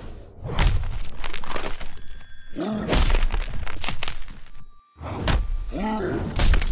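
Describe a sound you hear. Heavy punches land with dull thuds.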